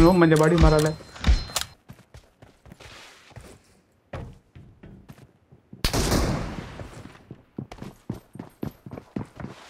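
Footsteps run quickly over ground.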